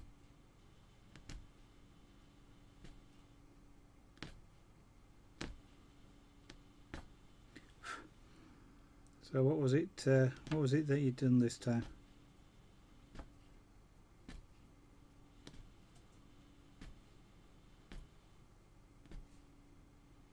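A punch needle taps rhythmically through stretched cloth.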